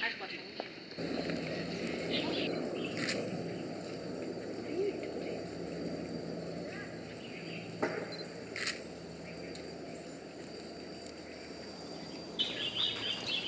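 A panda laps water with soft slurping sounds.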